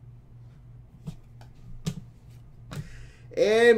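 Trading cards shuffle and click in hands.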